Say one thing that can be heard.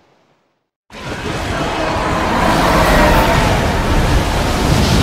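A huge creature roars loudly.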